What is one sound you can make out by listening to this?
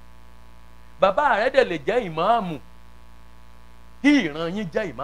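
A man preaches loudly and with animation through a microphone and loudspeakers.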